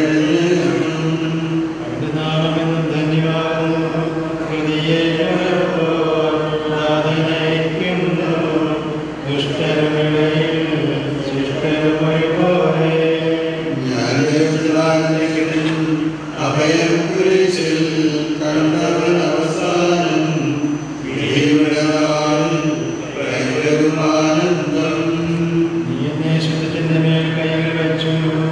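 Men chant in unison through a microphone in a large echoing hall.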